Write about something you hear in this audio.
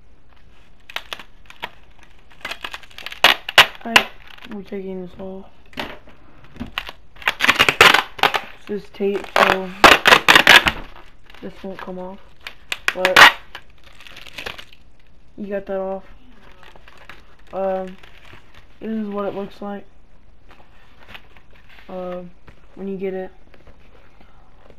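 Plastic air cushion packaging crinkles and rustles as hands handle it.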